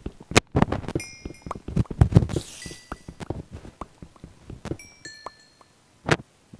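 Video game item pickups pop with short high chimes.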